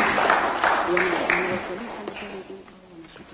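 A group of people applaud and the clapping fades.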